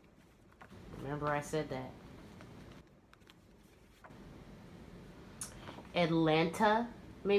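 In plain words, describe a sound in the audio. A young woman speaks softly and close by, in short phrases.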